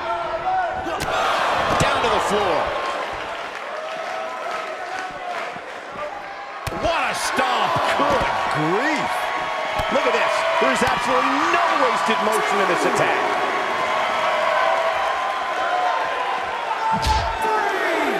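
Bodies slam heavily onto a mat.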